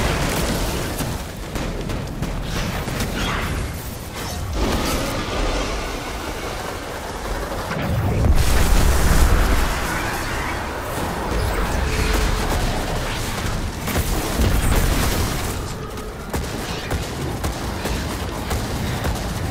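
Deep rumbling blasts shake through the fight.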